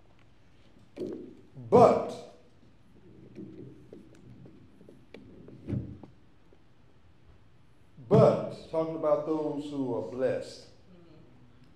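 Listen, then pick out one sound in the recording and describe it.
An elderly man speaks into a microphone.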